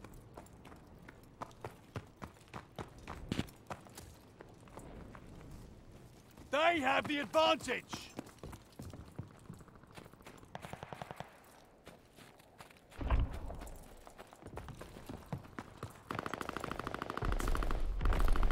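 Footsteps crunch on snow and hard floors.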